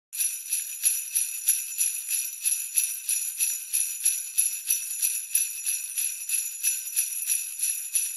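A small bell rings quickly and steadily, with a bright jingling tone.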